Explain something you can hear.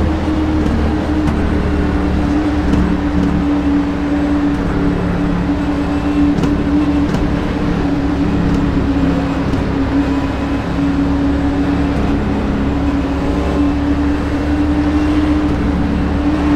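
Other race cars roar close by.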